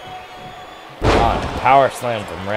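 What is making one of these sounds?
A body slams down hard onto a wrestling mat.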